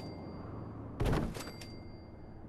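A wooden structure thuds into place with a sharp knock.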